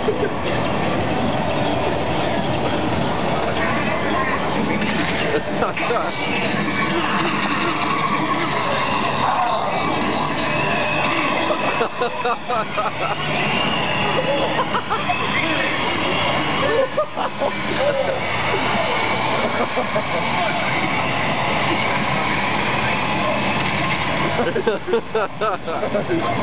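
Loud arcade game music plays from a machine.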